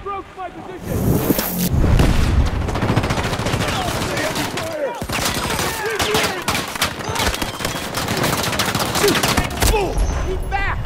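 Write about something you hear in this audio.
Rapid gunshots crack loudly and close by.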